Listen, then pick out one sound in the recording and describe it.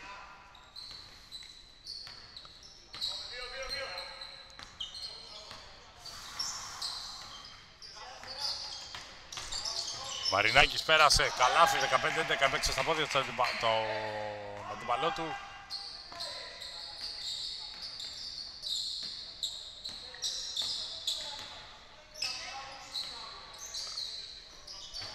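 Sneakers squeak sharply on a hard court, echoing in a large hall.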